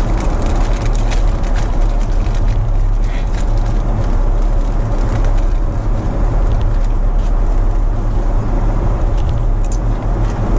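A plastic food wrapper crinkles close by.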